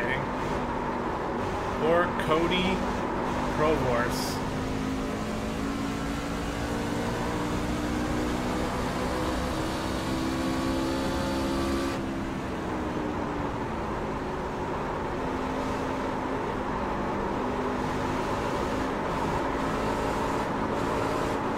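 A race car engine drones steadily at high speed, shifting slightly in pitch.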